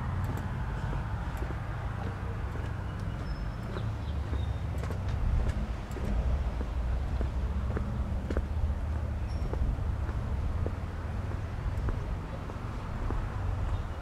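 Footsteps tap steadily on a pavement outdoors.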